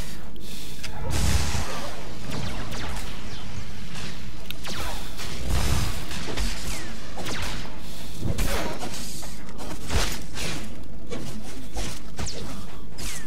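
Lightsabers hum and clash with sharp crackling hits.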